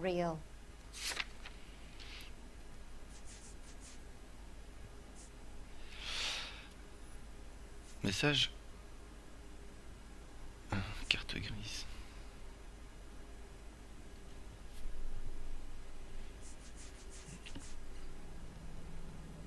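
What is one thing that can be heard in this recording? Notebook pages flip.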